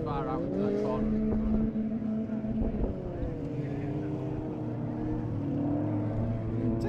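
Several car engines roar and rev outdoors, some distance away.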